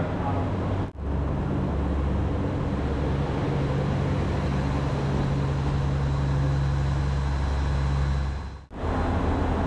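A train's engine hums steadily beside a platform.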